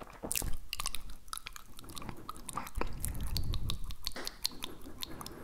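Soft mouth clicks and smacks sound right against a microphone.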